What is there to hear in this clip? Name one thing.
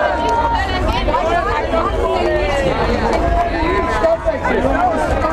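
A crowd of young men and women talks and shouts loudly outdoors.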